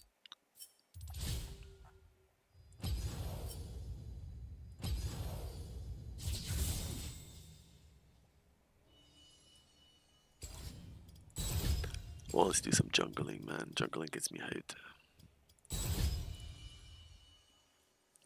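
Game menu sounds whoosh and chime with each menu change.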